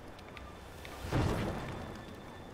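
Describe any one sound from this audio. A fire flares up and roars.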